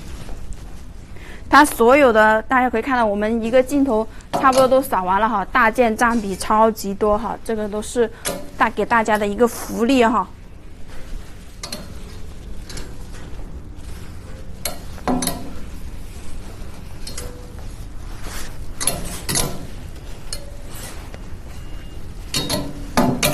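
Clothes hangers clack and slide along a metal rail.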